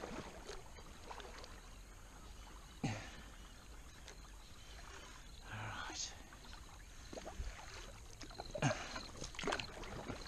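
A paddle splashes and drips in calm water close by.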